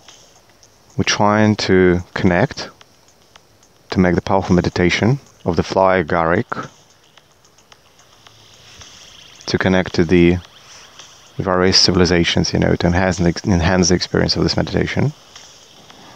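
A man speaks calmly and slowly into a close microphone.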